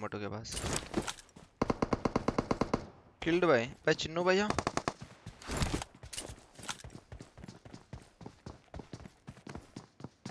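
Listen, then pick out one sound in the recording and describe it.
Footsteps patter quickly across hard ground.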